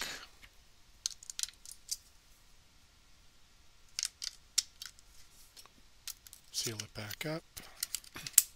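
Plastic clicks and rattles as batteries are fitted into a small device.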